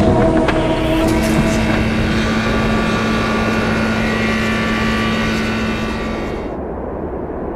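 A loud humming blast of energy swells and rings.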